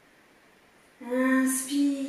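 A woman speaks calmly and clearly through a close microphone.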